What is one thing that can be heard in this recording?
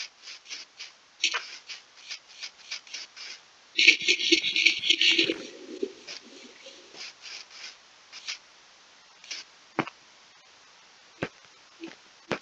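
Footsteps patter quickly on grass and stone.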